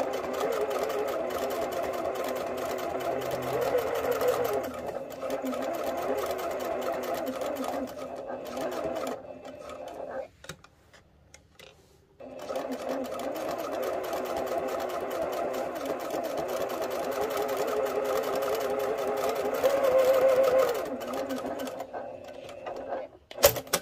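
A sewing machine runs fast with a steady whirring hum, stopping briefly in the middle.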